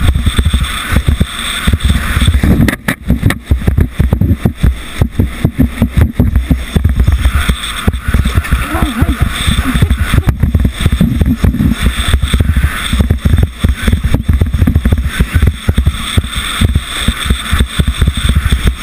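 A sled's runners scrape and rattle loudly over ice.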